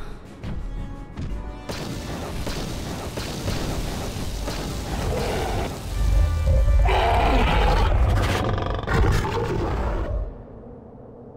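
A large beast roars loudly.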